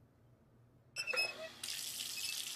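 A tap squeaks as a hand turns it.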